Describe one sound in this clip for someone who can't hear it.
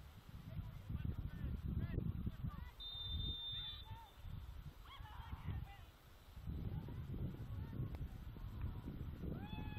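Players call out to each other across an open field in the distance.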